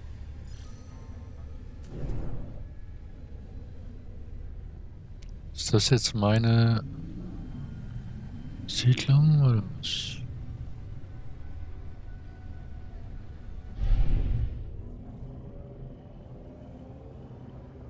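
A spaceship engine hums low and steadily.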